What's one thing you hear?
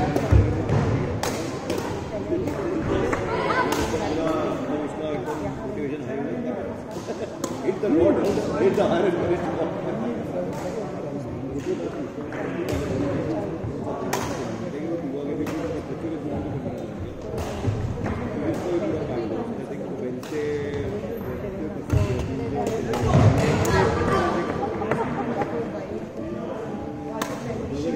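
Several young people talk and call out, echoing in a large hall.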